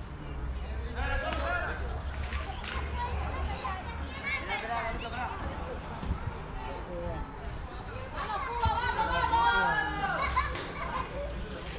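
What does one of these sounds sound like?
Young men call out and talk across an open field.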